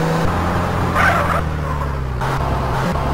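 Tyres screech briefly as a car swerves to a stop.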